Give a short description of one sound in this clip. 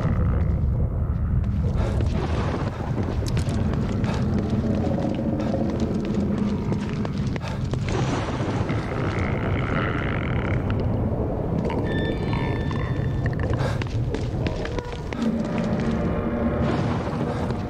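Footsteps move quietly across a hard floor.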